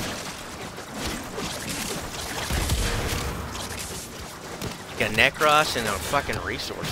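Video game weapons fire and clash in quick bursts.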